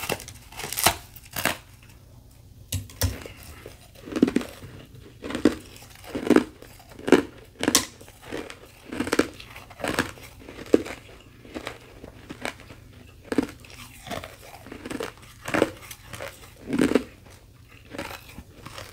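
Ice crackles and crunches close up.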